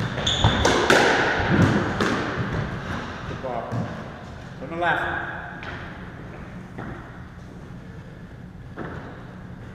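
A squash ball smacks against the walls and racket, echoing in a hard, bare court.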